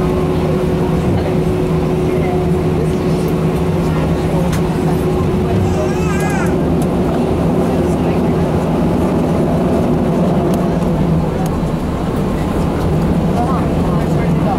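The jet engines of an Airbus A319 hum steadily as it taxis, heard from inside the cabin.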